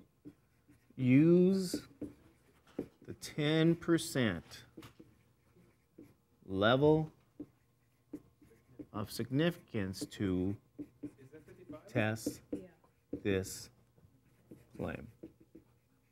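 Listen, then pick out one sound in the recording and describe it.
A man speaks calmly and clearly, pausing between phrases.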